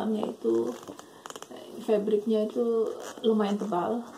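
A zipper on a handbag slides open.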